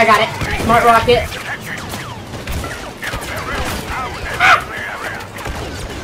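Blaster rifles fire in rapid bursts of laser shots.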